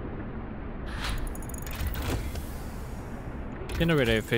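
A soft whoosh sounds as a menu opens.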